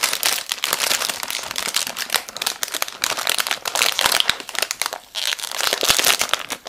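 A plastic wrapper crinkles and rustles loudly as hands handle and tear it open.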